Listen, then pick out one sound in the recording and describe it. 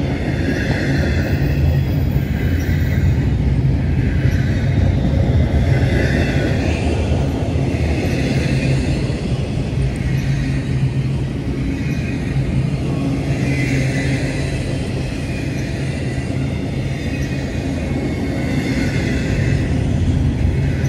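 A freight train rumbles past close by.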